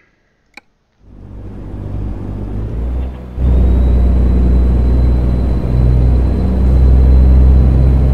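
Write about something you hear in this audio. A heavy truck engine rumbles low and steadily, then grows louder.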